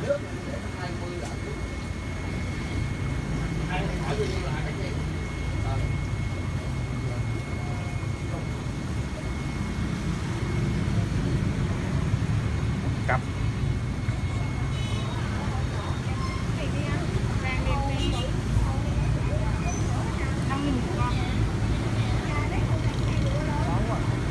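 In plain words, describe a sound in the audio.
Water bubbles and gurgles steadily in aquariums.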